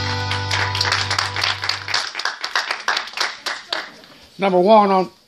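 A group of people claps in a room with some echo.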